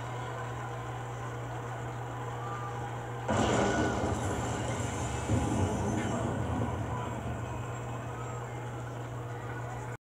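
Game music plays through a television speaker.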